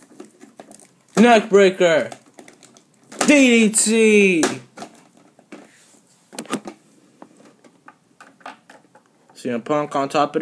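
Small plastic figures knock and clatter against each other and a hard floor.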